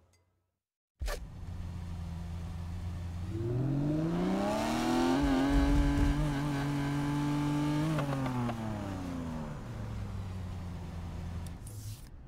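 A car engine idles, then revs up high and winds back down.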